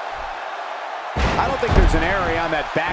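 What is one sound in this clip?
A body slams heavily onto a wrestling ring.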